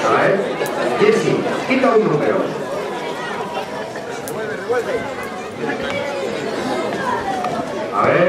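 A crowd of adult men and women chatter close by outdoors.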